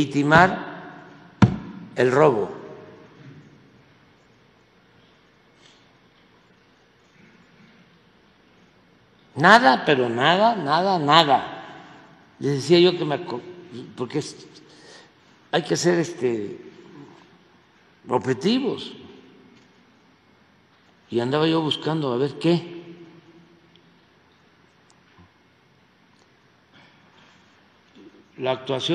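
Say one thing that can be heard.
An elderly man speaks through a microphone in short bursts with pauses.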